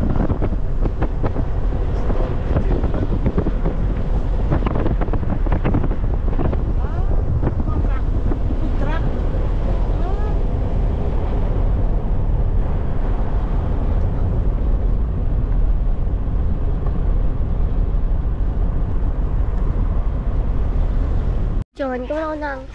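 Wind and road noise roar steadily from inside a moving car.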